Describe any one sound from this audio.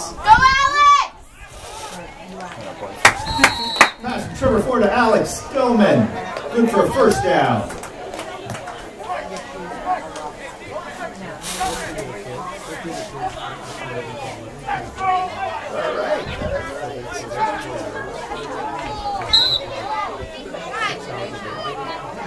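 Young players and adults shout and cheer nearby outdoors.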